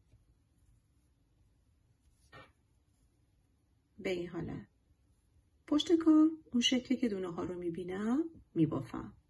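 Knitting needles tap and click softly.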